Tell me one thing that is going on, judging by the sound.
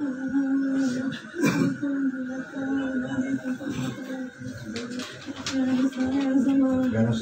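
A woman wails and sobs loudly nearby.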